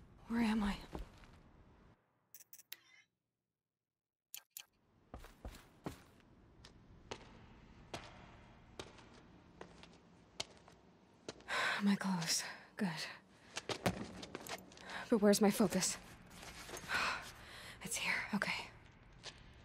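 A young woman speaks quietly to herself, close by.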